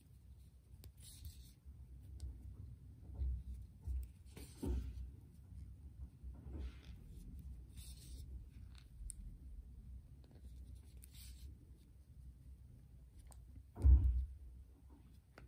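Fingers rub and handle a soft knitted toy.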